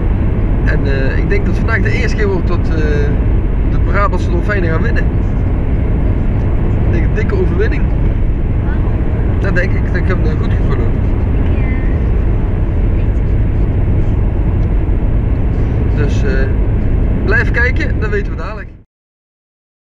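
A car engine hums steadily with road rumble.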